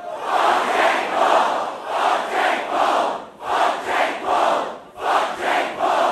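A large crowd chants in rhythm in a large echoing hall.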